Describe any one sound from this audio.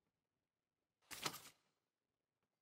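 A paper page turns with a quick rustle.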